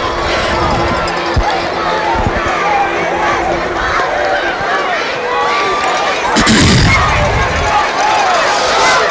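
A large crowd of men and women cheers and chatters outdoors.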